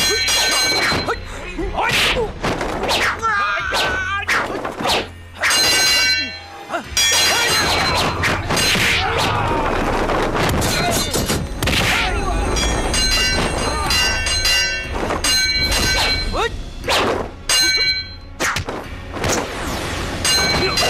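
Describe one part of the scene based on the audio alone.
Swords clash and ring sharply again and again.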